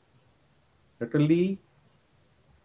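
A man says a brief word over an online call.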